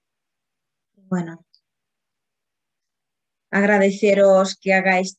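A middle-aged woman speaks calmly through an online call.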